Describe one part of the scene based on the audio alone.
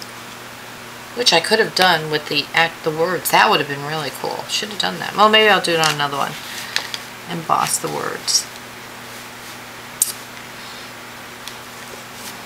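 Stiff paper rustles as it is handled.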